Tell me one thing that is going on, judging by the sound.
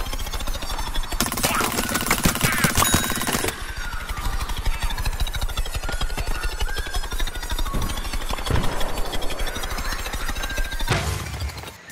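Rapid small shots fire in quick succession.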